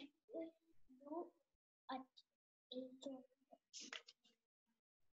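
Several children speak quietly over an online call, one after another.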